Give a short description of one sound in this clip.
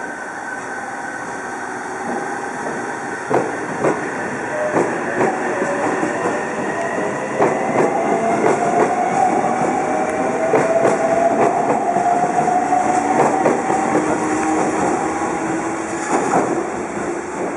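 An electric train pulls out, its motor whining and rising in pitch.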